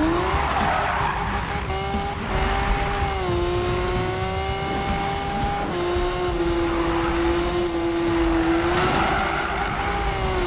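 A racing car engine roars at high revs, its pitch dropping with each gear change.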